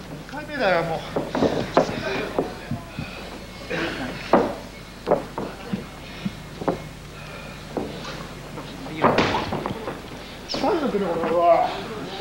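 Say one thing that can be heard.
A crowd murmurs throughout the hall.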